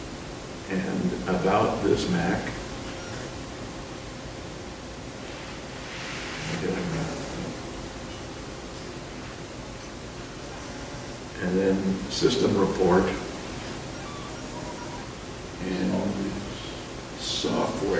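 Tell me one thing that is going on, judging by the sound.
An elderly man speaks calmly in short phrases through a computer microphone, as on an online call.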